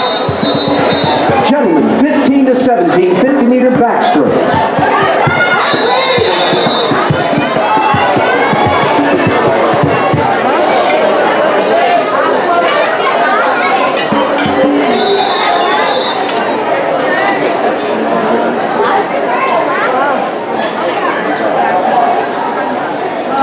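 A crowd of spectators chatters and cheers loudly in an open-air venue.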